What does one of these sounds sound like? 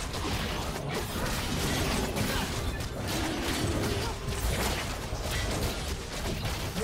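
Magic spells crackle and whoosh in a video game battle.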